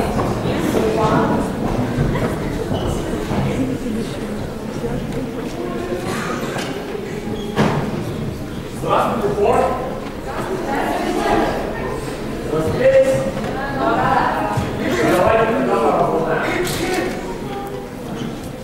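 A crowd of teenagers chatters in a large echoing hall.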